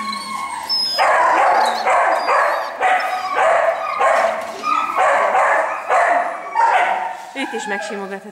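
A dog barks loudly and repeatedly close by.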